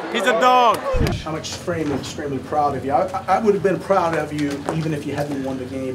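An older man speaks loudly to a group in a small room.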